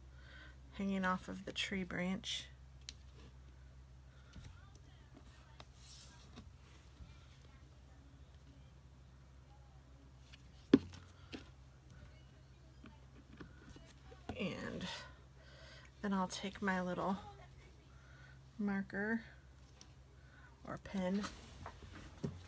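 Paper rustles and slides softly across a table.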